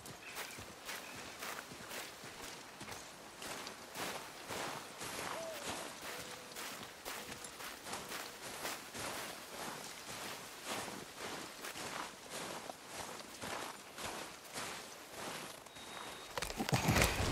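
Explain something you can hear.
Footsteps crunch steadily on snow and dirt.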